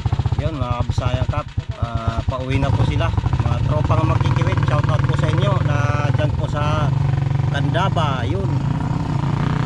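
A man talks close up with animation.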